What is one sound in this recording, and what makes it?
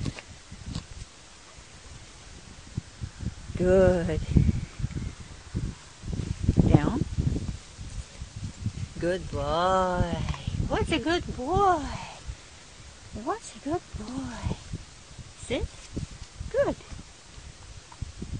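A puppy chews and gnaws on a leash close by.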